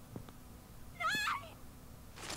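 A young woman speaks briefly.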